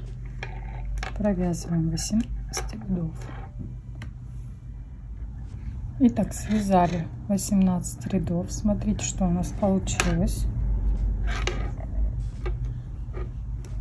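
Knitting needles tap and click softly.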